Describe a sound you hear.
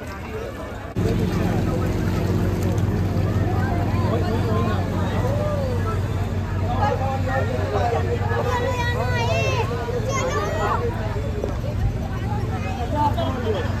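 A crowd of men and women chatter nearby outdoors.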